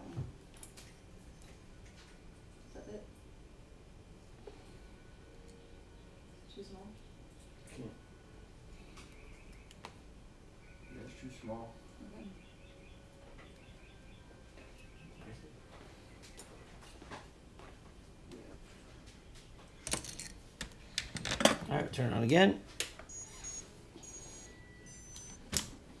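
Small wires and parts click and rustle in handling.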